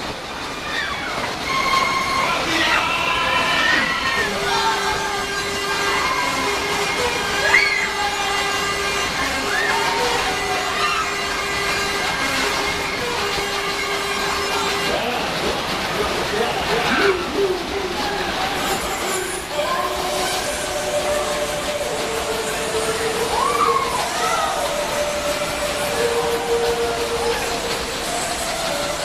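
Fairground ride cars swoosh past, close by, over and over.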